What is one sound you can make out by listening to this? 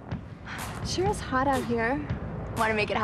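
A young woman speaks playfully, close by.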